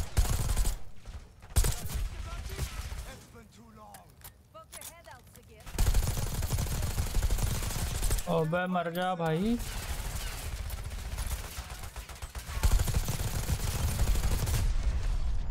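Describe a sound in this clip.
Gunfire bursts loudly and rapidly close by.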